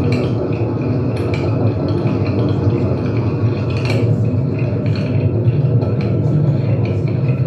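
A double bass plucks a deep walking line.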